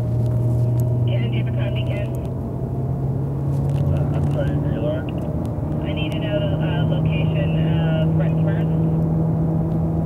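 Tyres squeal briefly through the corners.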